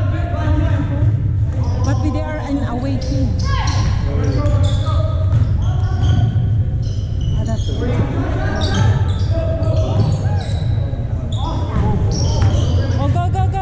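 A crowd of spectators and players chatter and call out in a large echoing hall.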